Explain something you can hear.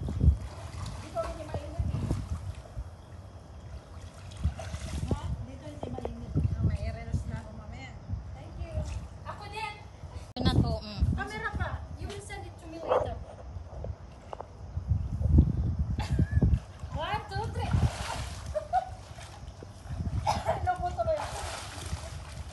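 Women talk with animation close by, outdoors.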